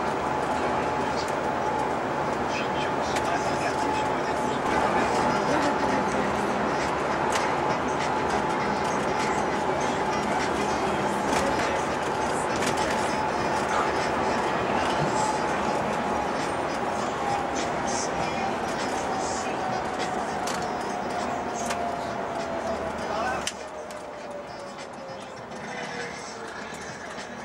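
A vehicle's engine drones steadily and slowly drops in pitch.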